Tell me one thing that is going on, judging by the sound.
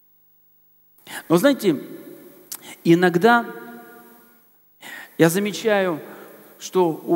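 A man speaks with animation through a headset microphone, echoing in a large hall.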